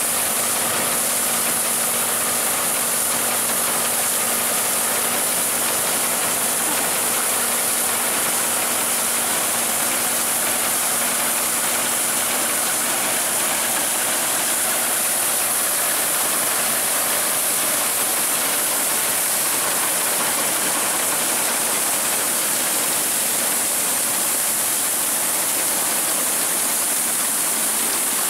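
A combine harvester clatters as it cuts wheat.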